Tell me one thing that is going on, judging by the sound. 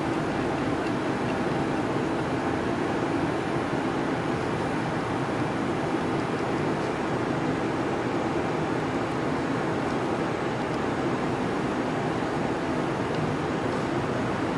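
Small metal parts click and scrape as a fitting is screwed together by hand.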